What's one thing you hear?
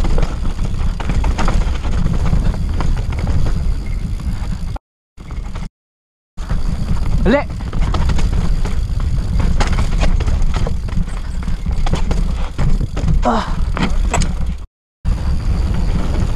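Bicycle tyres crunch and rumble over a dirt and rocky trail.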